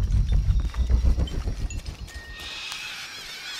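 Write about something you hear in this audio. Footsteps crunch over leaves and dirt.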